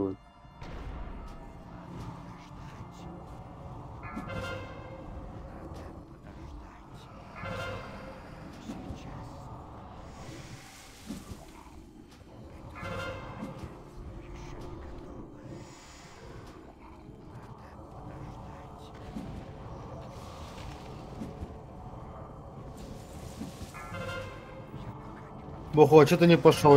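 Game spells crackle and whoosh during a battle.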